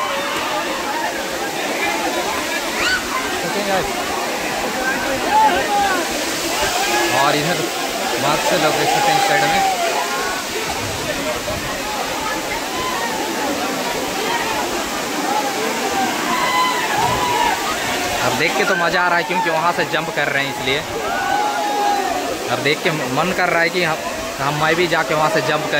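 A waterfall splashes steadily onto rocks and water.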